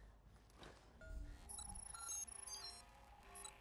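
An electronic scanner beeps and chirps softly.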